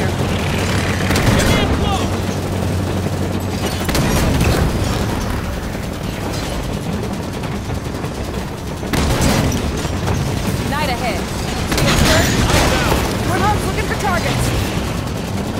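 Gunfire rattles in bursts.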